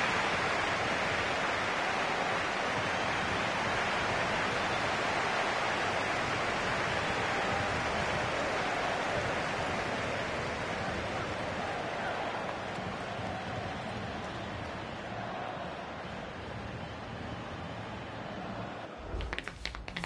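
A large stadium crowd roars and cheers steadily, slowly fading.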